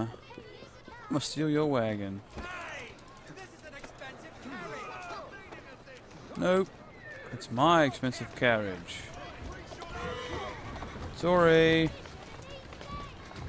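A horse-drawn carriage rattles over cobblestones.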